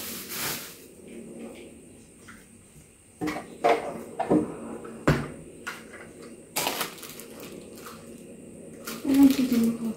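Plastic parts clatter and knock as they are handled.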